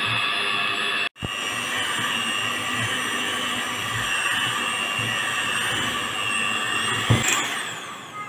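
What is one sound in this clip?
An electric hand mixer whirs steadily while beating thick batter in a metal bowl.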